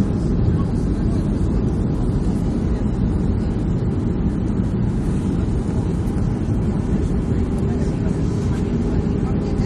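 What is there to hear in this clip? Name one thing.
Jet engines roar, heard as a steady low rumble inside the cabin of a jet airliner.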